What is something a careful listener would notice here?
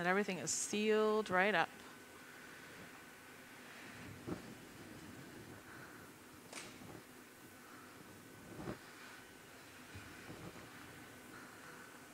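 A furnace roars steadily.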